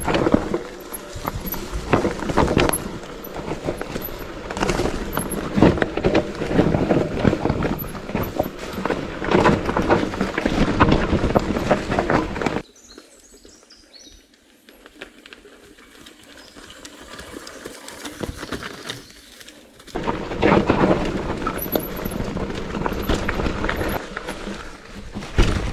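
A mountain bike rattles and bumps over a rough trail up close.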